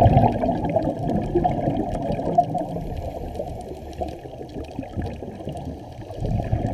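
Water rumbles and swirls in a low, muffled wash underwater.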